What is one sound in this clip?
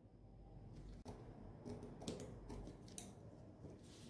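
Scissors snip through fabric.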